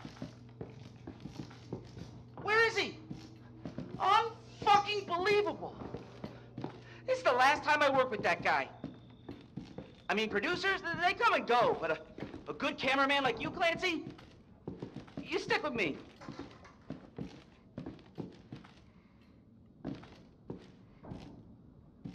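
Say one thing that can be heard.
Footsteps tread slowly on a floor.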